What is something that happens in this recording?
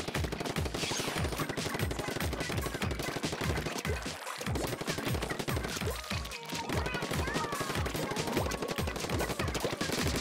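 A toy-like ink blaster squirts and splatters wet paint in quick bursts.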